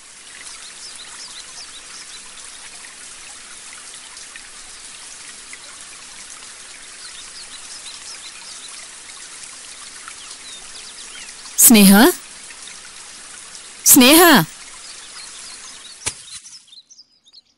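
Water sprays steadily from a garden hose.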